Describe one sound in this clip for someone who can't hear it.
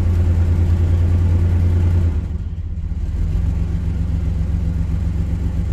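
A vehicle engine rumbles low and steady, its tone shifting slightly partway through.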